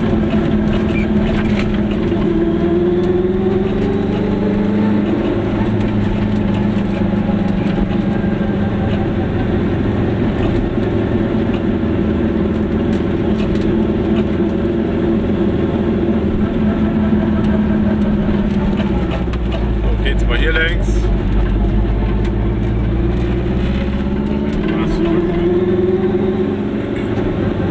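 A car engine hums steadily and rises and falls in pitch as it drives.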